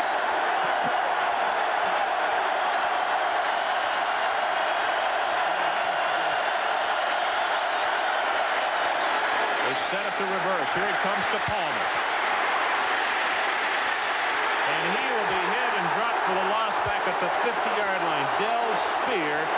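A large crowd roars steadily.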